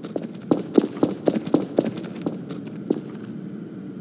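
A gun fires a quick series of shots.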